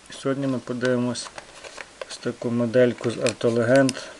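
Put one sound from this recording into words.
A plastic package crinkles as a hand handles it.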